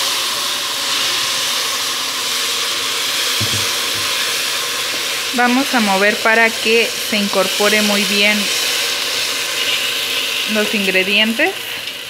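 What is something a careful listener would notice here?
A spatula scrapes and stirs rice in a pan.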